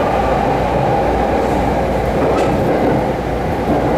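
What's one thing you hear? A passing train roars by close alongside.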